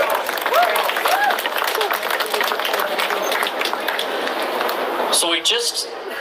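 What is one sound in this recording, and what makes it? A crowd cheers and shouts.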